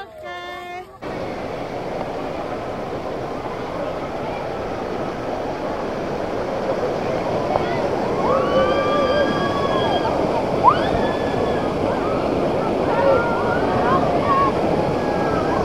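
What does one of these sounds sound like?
Water rushes and churns loudly over rapids.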